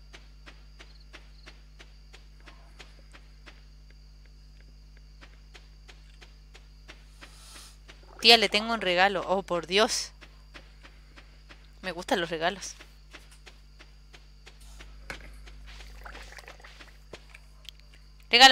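Soft footsteps patter quickly along a dirt path.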